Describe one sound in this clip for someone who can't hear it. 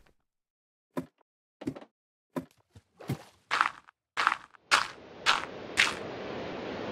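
Footsteps clatter on a wooden ladder in quick steps.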